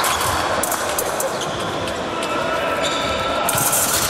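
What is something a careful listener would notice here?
Fencing blades clash briefly.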